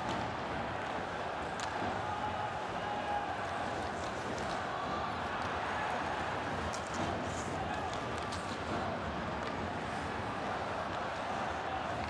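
A large crowd roars and cheers steadily in an echoing arena.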